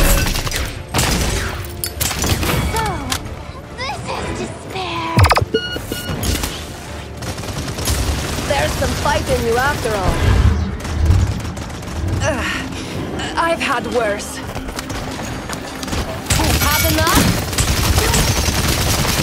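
Explosions burst with a loud boom.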